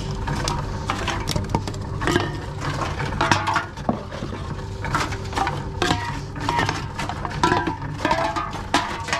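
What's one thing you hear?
A recycling machine hums and whirs steadily.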